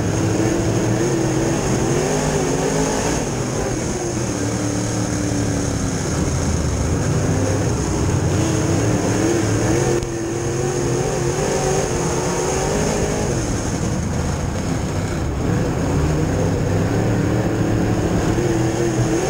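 A race car engine roars loudly from close by, its pitch rising and falling.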